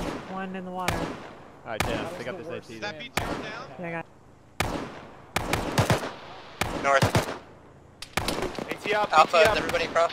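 Rifle shots crack nearby, one at a time, echoing briefly.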